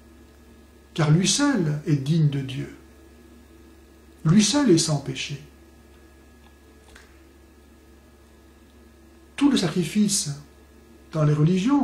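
A man speaks calmly and closely into a microphone, in short phrases with pauses.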